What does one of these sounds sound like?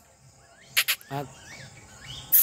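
A young goat bleats briefly nearby.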